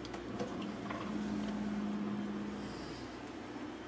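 A coffee machine hums briefly.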